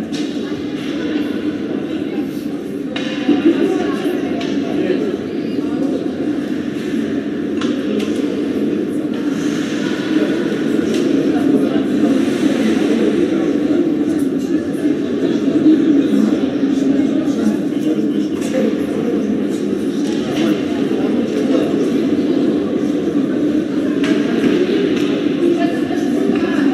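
Spectators murmur and chatter in a large echoing arena.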